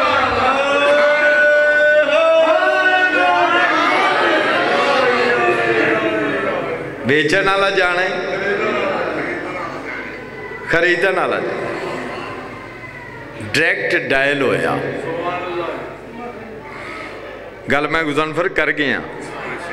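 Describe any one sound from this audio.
A man chants and speaks passionately into a microphone, heard through loudspeakers in an echoing hall.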